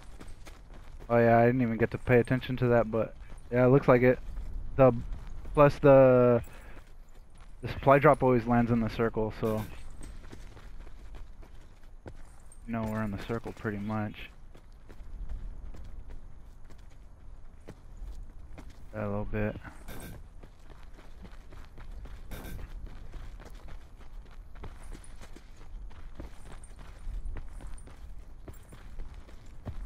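Footsteps crunch softly on dry dirt and gravel.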